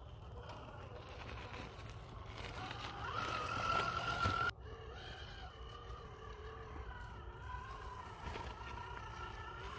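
A small electric motor whines as a toy truck crawls over rocks.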